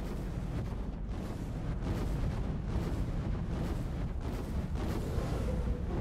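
Footsteps thud on a wooden bridge.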